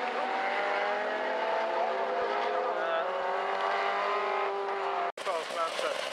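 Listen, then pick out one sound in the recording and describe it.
Racing car engines roar and whine as the cars speed past on a track.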